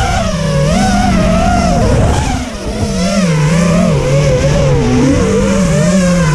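A small drone's motors whine close by, rising and falling in pitch as it flies.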